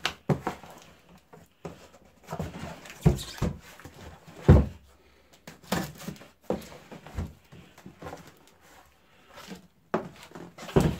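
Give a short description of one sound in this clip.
Hands tap, rub and knock on a cardboard box.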